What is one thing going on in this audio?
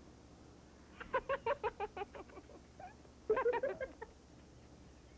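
A man laughs heartily nearby.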